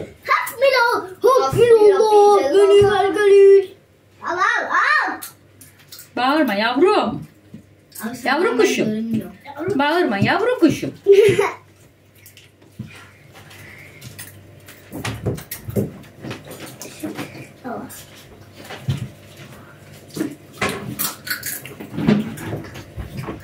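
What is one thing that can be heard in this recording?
A young boy talks and shouts excitedly close by.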